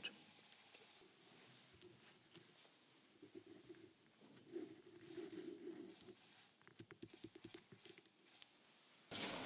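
Paper rustles as a man handles pages.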